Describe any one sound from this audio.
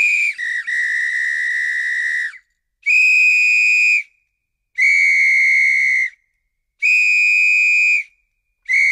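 A man blows a shrill whistle in long, steady blasts with short pauses between them.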